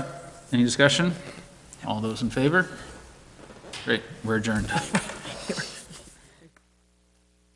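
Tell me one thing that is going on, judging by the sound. A man speaks through a microphone in a large room.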